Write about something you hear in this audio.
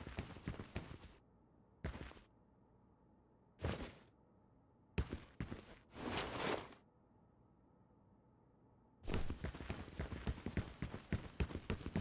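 Quick footsteps clatter on a hard floor.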